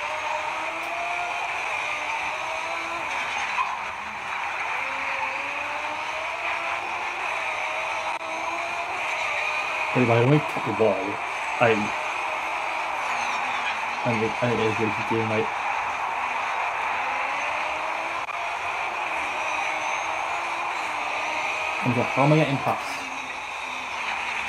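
A race car engine roars and shifts through gears.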